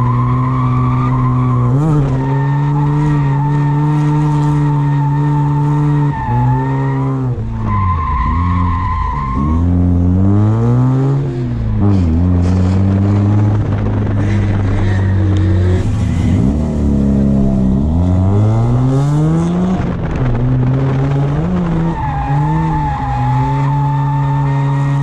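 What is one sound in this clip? A car engine roars loudly up close, revving up and down as the car drifts.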